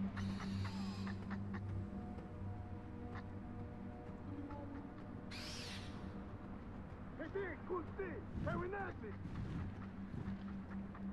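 Wind rushes steadily past a gliding owl.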